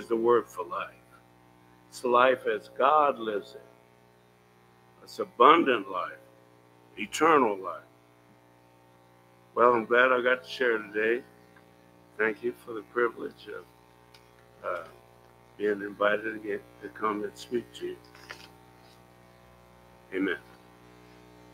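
An elderly man speaks with animation through a microphone.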